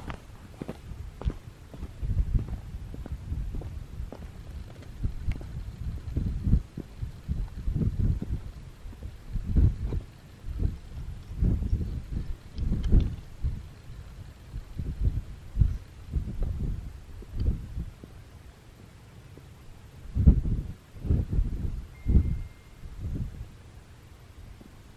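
Wind gusts and rumbles across an open hilltop.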